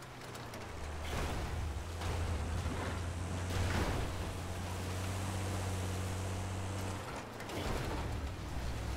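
Water splashes and churns around a vehicle's wheels.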